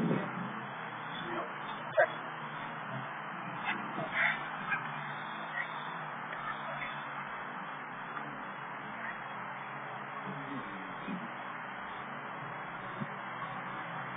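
A dog growls as it tugs and bites at a rag.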